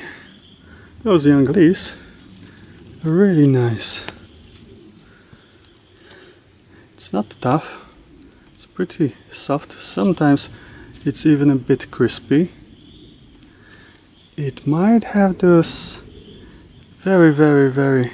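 Leaves rustle softly as a hand handles them.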